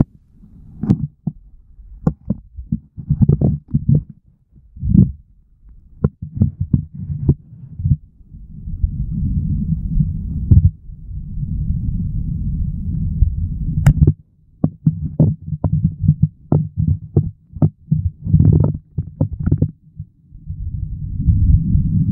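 Water rushes and gurgles, muffled as if heard underwater.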